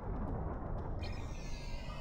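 A transporter beam hums with a bright, rising shimmer.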